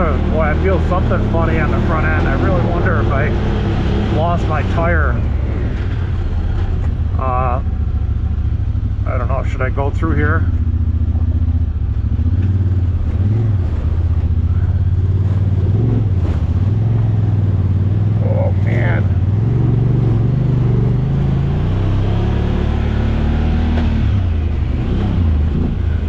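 An off-road vehicle engine rumbles steadily at low speed.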